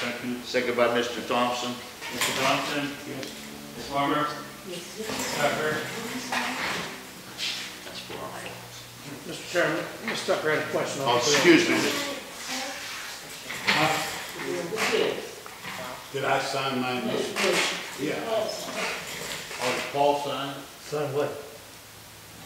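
Men talk calmly in turn, heard in a room with a slight echo.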